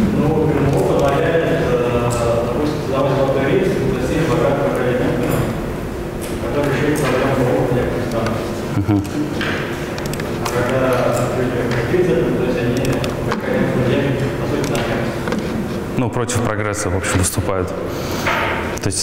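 A woman speaks steadily into a microphone in a large echoing hall.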